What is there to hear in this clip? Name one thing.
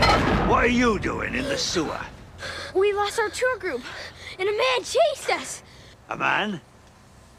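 A young girl speaks urgently.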